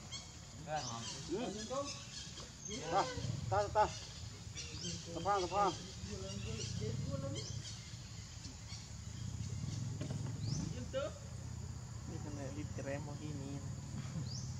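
Young monkeys squeal and chirp close by.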